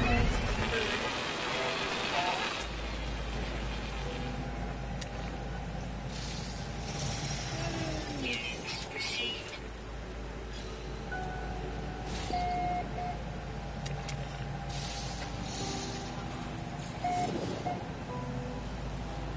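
Electronic chimes sound as game notifications pop up.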